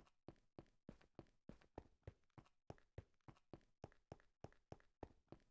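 Quick footsteps thud on stone at a steady run.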